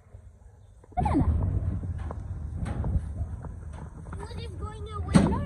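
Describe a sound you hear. Footsteps clang on a metal walkway.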